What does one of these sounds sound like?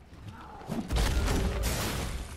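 A sword clangs against metal.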